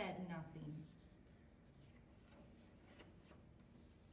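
A page of a book turns with a soft rustle.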